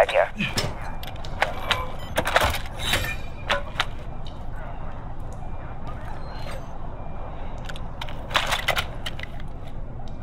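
Gear clinks and rattles as items are picked up.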